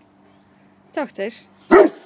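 A large dog whines close by.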